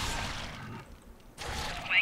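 Beasts snarl and growl during a fight.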